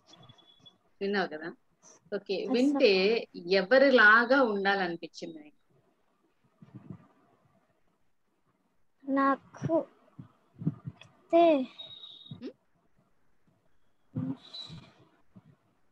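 A young girl speaks calmly over an online call, with pauses.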